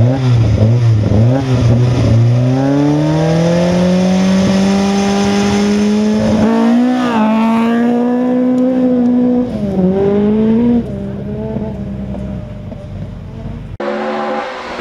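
A Ford Escort Mk1 rally car's four-cylinder engine revs at full throttle as the car accelerates away.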